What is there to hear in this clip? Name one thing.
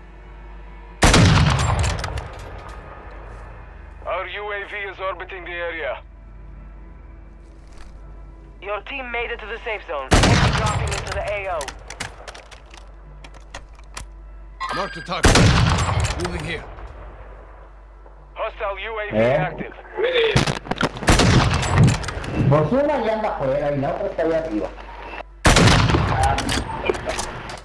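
A rifle fires loud single shots that echo and ring out.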